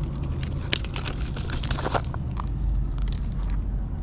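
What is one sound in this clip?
Footsteps crunch on gravel and stones.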